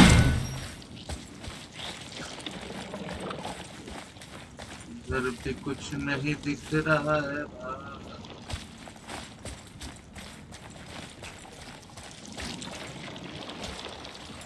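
Heavy footsteps crunch on rough ground.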